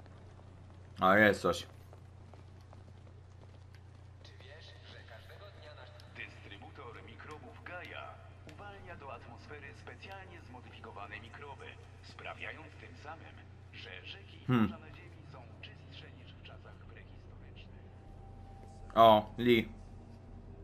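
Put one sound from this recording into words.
A young man speaks loudly in short bursts close to a microphone.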